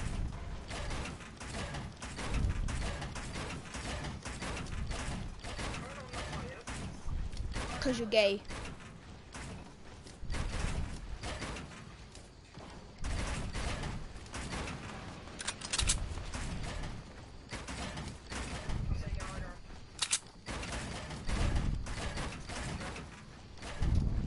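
Video game building pieces snap into place with rapid clicks and thuds.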